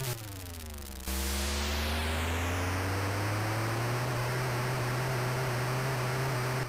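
A buzzy electronic car engine drones and slowly rises in pitch.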